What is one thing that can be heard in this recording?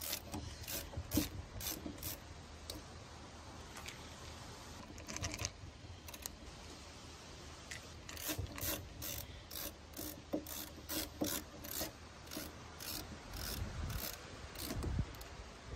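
A screwdriver clicks and scrapes as it turns a metal screw in a door latch.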